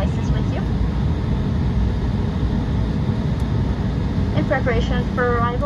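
The turbofan engines of a regional jet rumble low and steady, heard from inside the cabin as the jet rolls along the runway after landing.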